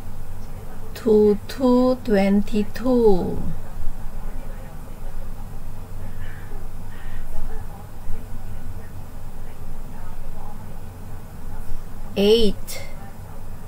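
An adult speaks into a webcam microphone, heard over an online call.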